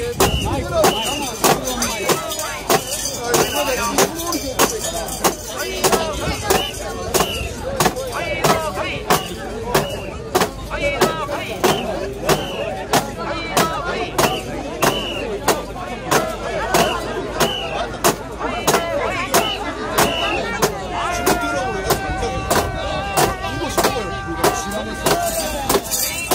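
Metal ornaments on a carried shrine jingle and clatter with each heave.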